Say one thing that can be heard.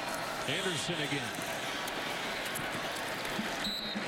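Football players collide and crash together in a tackle.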